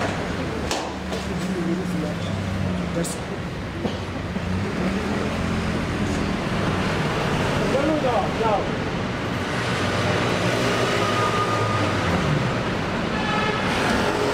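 Traffic rumbles steadily on a busy street outdoors.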